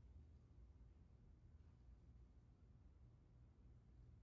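A snooker ball rolls softly across the cloth.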